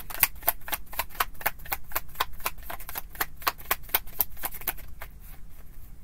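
Cards riffle and snap rapidly as they are shuffled.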